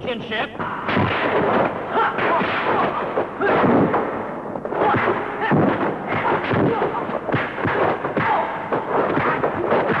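Blows land with sharp thuds during a fight.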